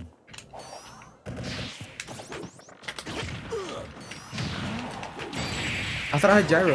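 Video game hits and blasts crash in quick bursts.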